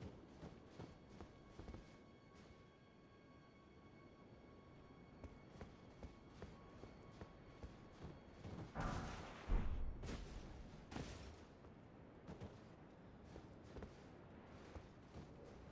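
Armoured footsteps clank on stone at a steady walking pace.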